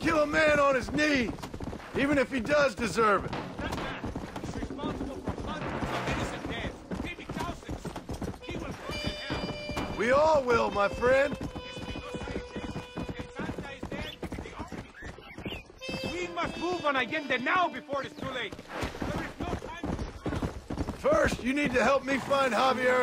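A horse's hooves thud steadily at a gallop on a dirt track.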